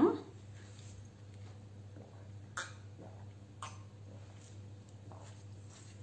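A young woman sips and gulps a drink.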